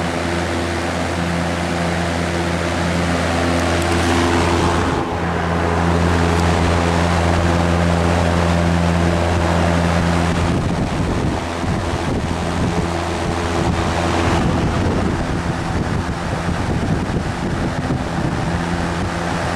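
A large box fan hums and whirs steadily with a rushing of air.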